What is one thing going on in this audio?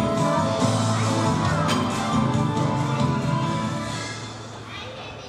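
A band plays lively music.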